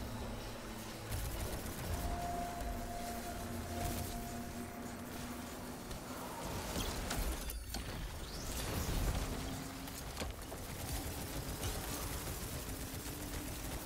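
Energy weapons crackle and whoosh.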